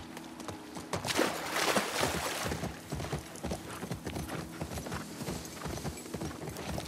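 Tall grass swishes against a horse's legs.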